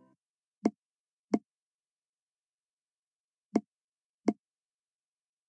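Short soft pops sound as balls drop into tubes in a puzzle game.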